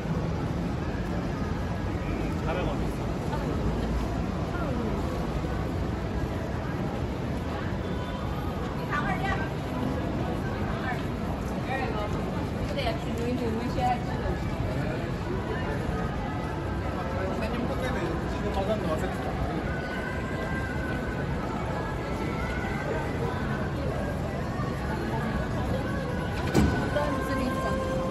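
Traffic hums steadily in the background.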